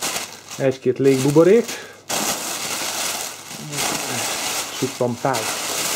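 Plastic air cushions rustle and crinkle as a hand moves them.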